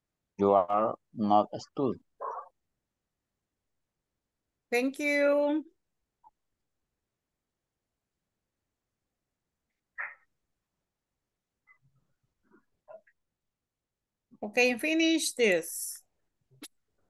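A woman speaks clearly through an online call, in short bursts with pauses.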